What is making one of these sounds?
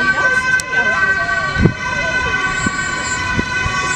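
A car drives past quickly.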